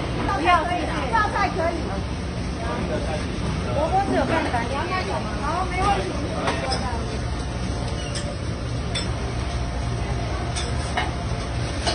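Dishes and utensils clatter behind a busy counter.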